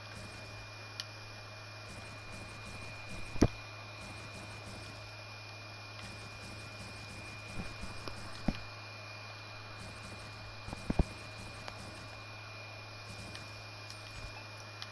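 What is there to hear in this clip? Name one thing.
Building pieces snap into place with short, sharp clicks.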